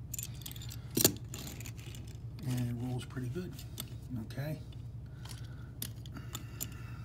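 A small toy car clicks down on a hard table.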